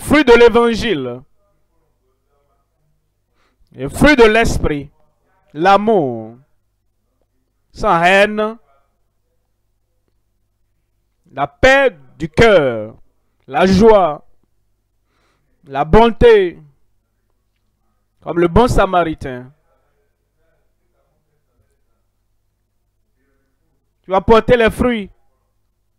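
A man calls out loudly in short bursts through a loudspeaker.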